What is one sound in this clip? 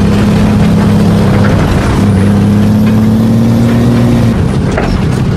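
A heavy vehicle engine drones steadily while driving, then cuts off.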